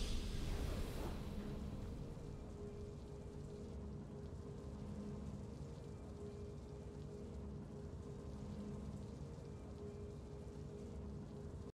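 A burst of triumphant music rings out and then settles into a soft, steady melody.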